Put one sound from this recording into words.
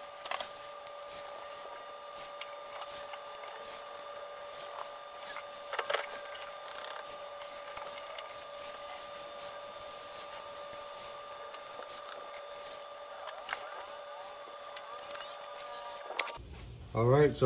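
Wires rustle and knock faintly as hands tug at them.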